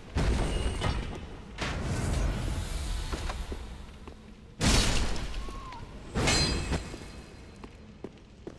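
Heavy blows land with loud crashing impacts.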